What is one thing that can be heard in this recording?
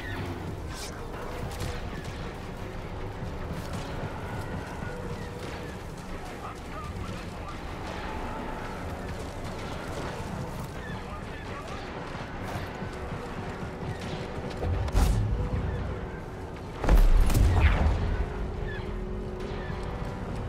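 Laser blasts zap and crackle.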